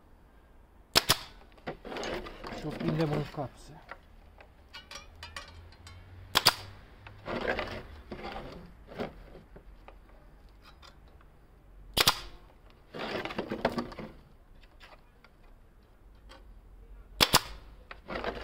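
A pneumatic nail gun fires with sharp bangs.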